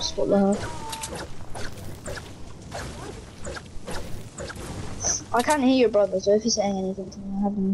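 Footsteps thud quickly across grass.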